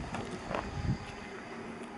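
A man's footsteps tap on a hard floor in a large echoing hall.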